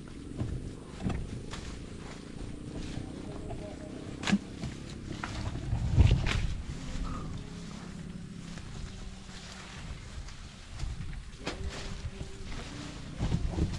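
Leaves and grass rustle as a man walks through brush.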